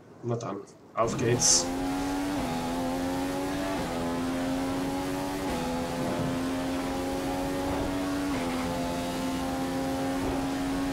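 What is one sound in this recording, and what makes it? A racing car engine roars at high speed, rising in pitch and dropping back with each gear change.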